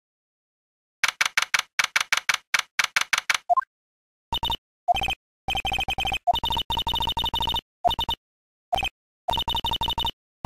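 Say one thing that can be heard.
Rapid electronic blips tick in quick bursts.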